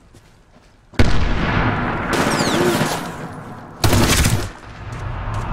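A rifle fires in loud, sharp bursts.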